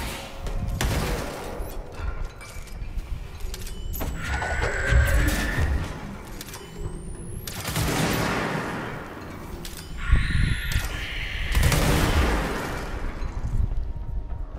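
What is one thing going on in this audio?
Loud blasts boom and crackle with flying debris.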